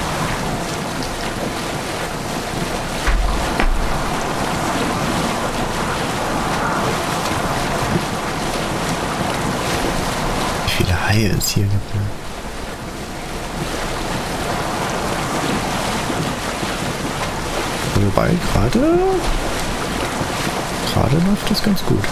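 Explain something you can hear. Waves wash and splash steadily around a sailing boat.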